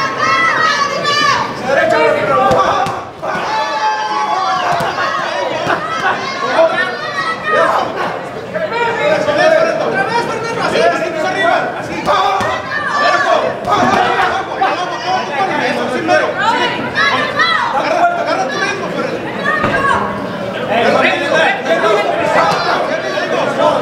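A crowd of spectators shouts and cheers loudly close by.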